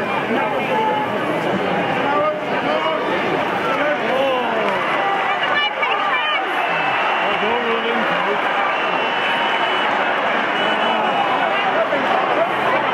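A large stadium crowd murmurs and shouts throughout.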